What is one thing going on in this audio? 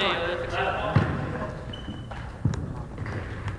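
A cricket bat taps on a wooden floor.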